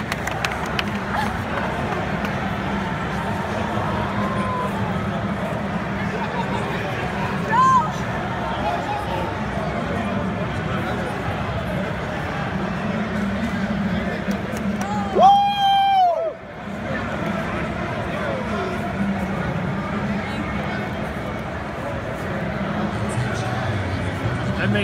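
A large crowd murmurs and chatters in a big echoing hall.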